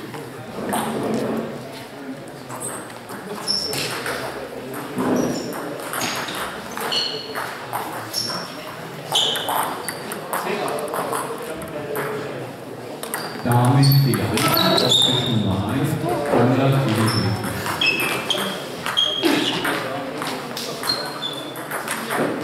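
Sneakers squeak on a hall floor.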